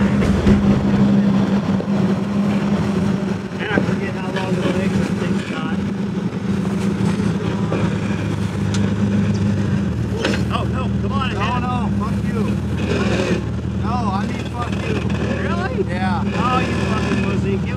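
An off-road vehicle's engine rumbles steadily at low revs.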